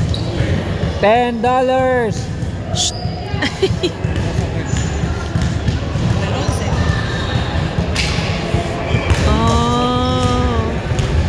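Young people shout and cheer in an echoing hall.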